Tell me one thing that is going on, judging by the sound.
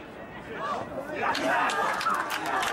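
A small group of spectators cheers and shouts as a goal is scored.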